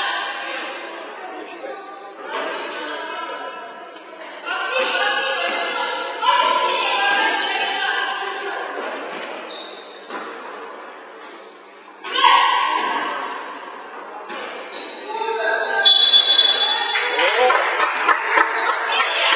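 Young women players call out to each other in an echoing sports hall.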